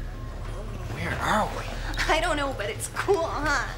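A young man speaks with surprise, close by.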